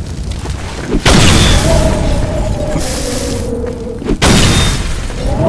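Explosions go off with loud booms.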